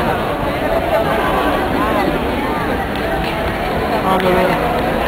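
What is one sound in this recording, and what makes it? A crowd murmurs and chatters in a large echoing indoor hall.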